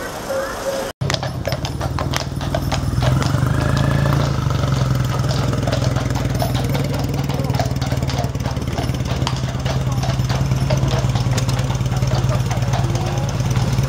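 Horse's hooves clop on a paved road.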